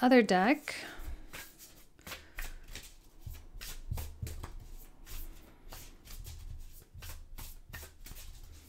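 Playing cards riffle and flick rapidly as a deck is shuffled.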